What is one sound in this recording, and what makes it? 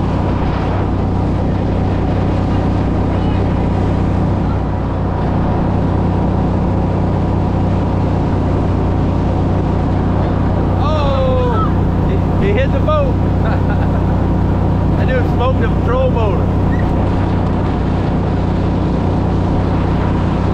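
A boat motor hums steadily throughout.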